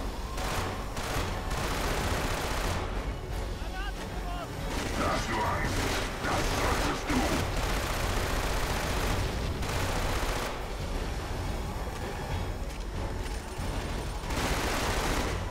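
Automatic rifle fire bursts out in a video game.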